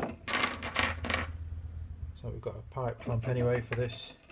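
Small metal parts clink together.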